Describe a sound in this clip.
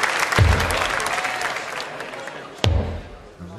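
A crowd cheers loudly in a large hall.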